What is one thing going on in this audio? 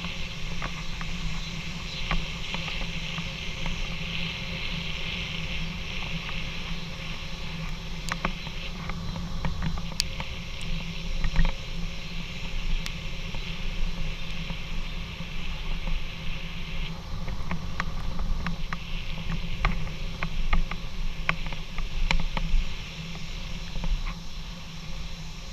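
Wind rumbles steadily against the microphone while moving fast outdoors.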